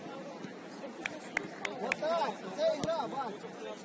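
A football is kicked with sharp thumps.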